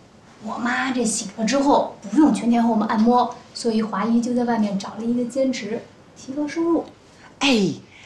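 A young woman talks calmly at close range.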